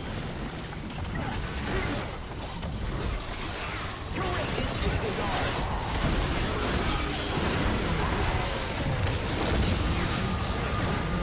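Game spell effects burst and crackle in a fast, busy fight.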